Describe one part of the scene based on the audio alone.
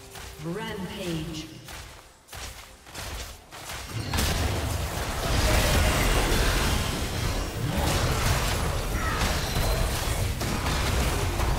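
Magic blasts and impacts crash and rumble in a fast fight.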